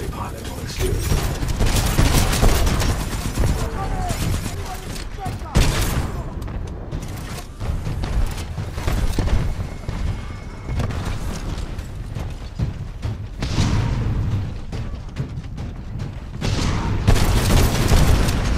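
A heavy rotary gun fires in loud bursts.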